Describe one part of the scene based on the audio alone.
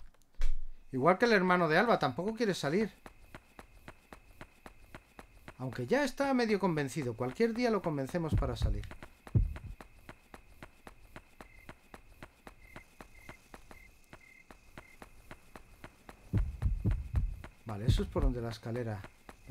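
Quick footsteps patter steadily.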